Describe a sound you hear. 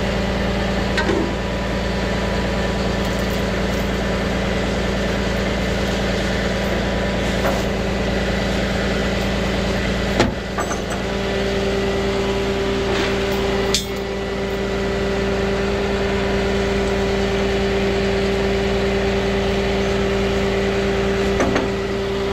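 Metal chain links clink and rattle now and then.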